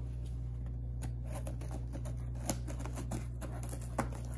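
Scissors snip through cardboard with crisp clicks.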